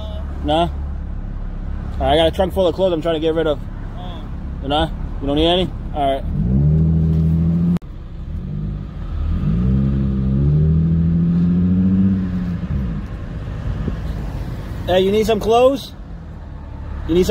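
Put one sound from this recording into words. A car engine hums low and steadily.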